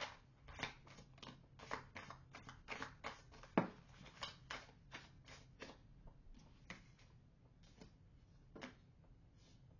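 Cards shuffle and riffle with quick soft flicks.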